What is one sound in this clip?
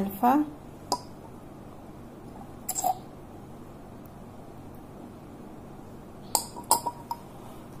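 Glass clinks softly as a dropper taps a small bottle.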